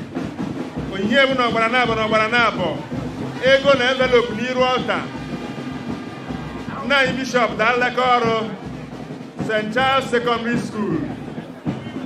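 A crowd sings together outdoors in bursts.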